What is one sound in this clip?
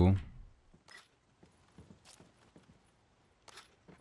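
Footsteps tread on a wooden floor.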